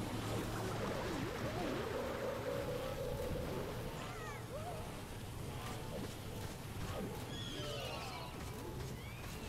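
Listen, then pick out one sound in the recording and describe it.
A fiery beam crackles and hisses in a game battle.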